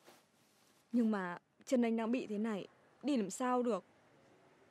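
A young woman speaks quietly and hesitantly, close by.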